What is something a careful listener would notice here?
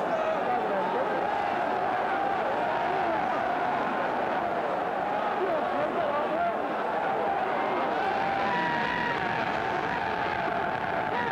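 A large crowd cheers and shouts excitedly.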